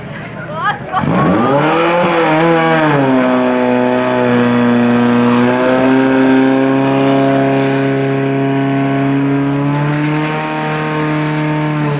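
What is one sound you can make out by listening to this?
A motor pump engine starts and roars loudly, revving up and then holding a steady drone.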